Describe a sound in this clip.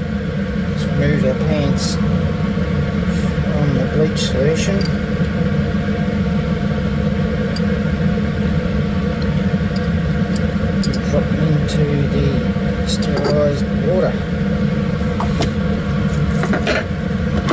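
Metal tweezers clink against a glass jar.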